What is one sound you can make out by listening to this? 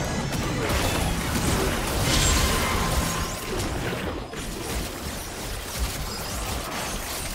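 Video game spell effects whoosh and crackle in a busy fight.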